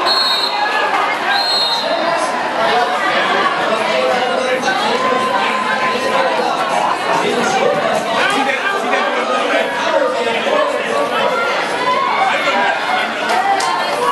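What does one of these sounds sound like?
A crowd of spectators chatters and cheers in a large echoing hall.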